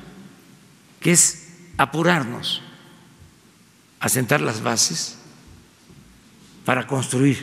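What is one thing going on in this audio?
An elderly man speaks slowly and emphatically into a microphone, with pauses between phrases.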